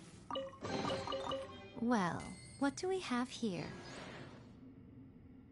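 A treasure chest opens with bright, sparkling chimes.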